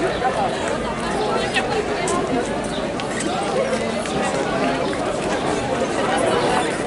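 A crowd of young people chatters and calls out outdoors.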